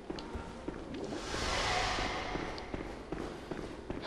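A shimmering magical whoosh swells and fades.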